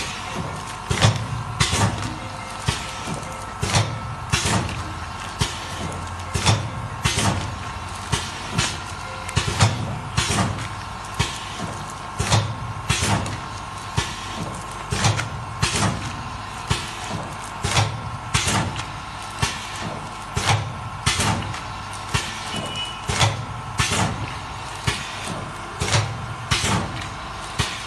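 A packing machine clacks in a steady, quick rhythm.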